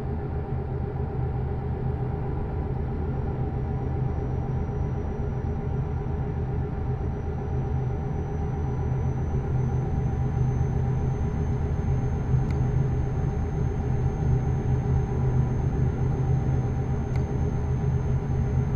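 Tyres rumble on a snowy road.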